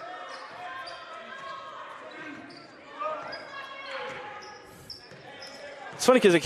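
A crowd of spectators murmurs and calls out in a large echoing gym.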